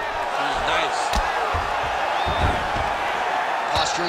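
Fists thud in heavy punches.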